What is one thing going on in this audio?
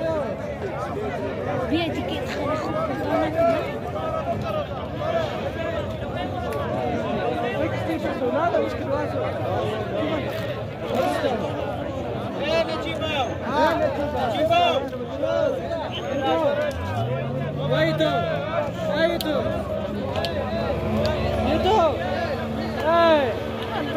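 A crowd of men talks and calls out all around, outdoors.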